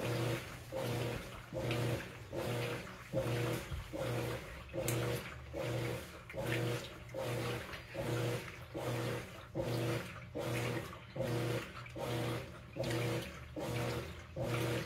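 A washing machine agitator churns back and forth with a rhythmic, whirring hum.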